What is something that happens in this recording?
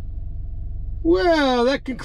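A middle-aged man makes a long, drawn-out sound up close, his voice rising and falling.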